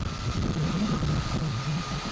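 A helicopter engine whines steadily nearby.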